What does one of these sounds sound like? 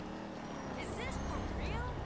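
Footsteps run on pavement.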